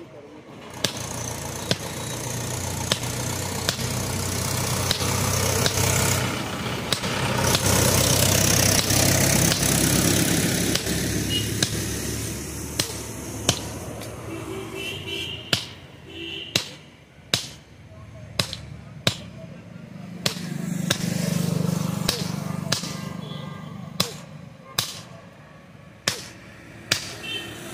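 A hammer strikes hot metal on an anvil with sharp ringing blows.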